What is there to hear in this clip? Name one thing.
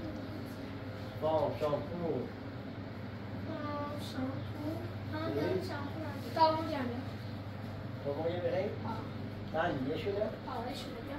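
A young boy talks nearby.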